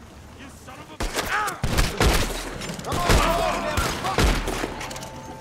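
Gunshots ring out in quick succession, close by.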